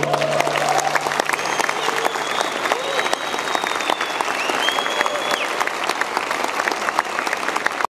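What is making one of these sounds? A man plays fast, rhythmic flamenco on an acoustic guitar through a microphone.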